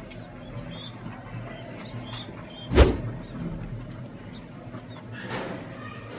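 Pigeon chicks squeak softly while being fed.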